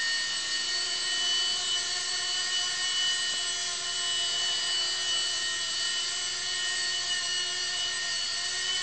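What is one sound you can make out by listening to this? A small toy helicopter's rotor whirs with a steady high buzz.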